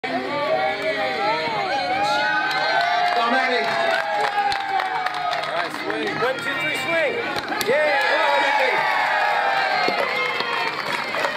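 A crowd of children and adults cheers and shouts nearby.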